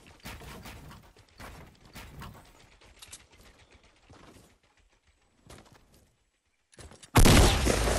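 Footsteps thud quickly across the ground.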